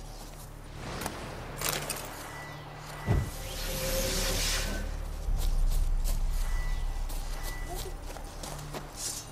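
Footsteps rustle through low brush.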